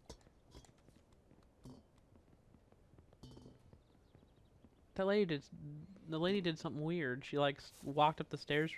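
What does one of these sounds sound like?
Footsteps tap lightly on stone paving.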